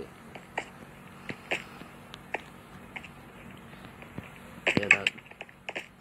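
Blocks crack and crumble as they are struck.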